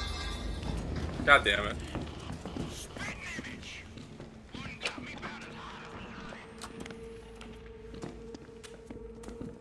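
Footsteps tread on a hard floor.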